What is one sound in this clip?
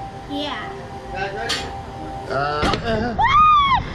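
A man laughs excitedly close by.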